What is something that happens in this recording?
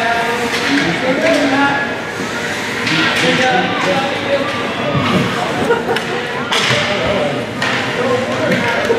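Spectators cheer and shout in an echoing rink.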